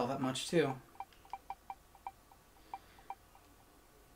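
Short electronic menu beeps tick in quick succession.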